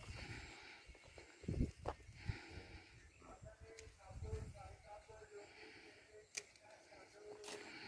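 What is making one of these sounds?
Leafy plant stems rustle and snap as a man pulls them.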